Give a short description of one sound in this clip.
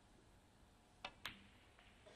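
A snooker cue strikes the cue ball with a sharp tap.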